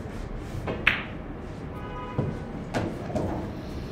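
Pool balls knock together and roll on the table.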